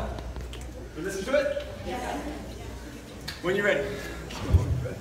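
A man speaks loudly to a group in a large, echoing room.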